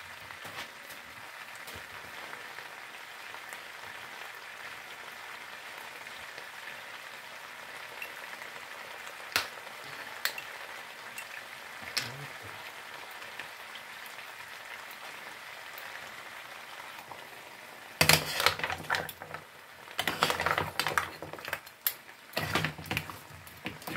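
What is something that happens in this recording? Seafood sizzles steadily in a hot pan.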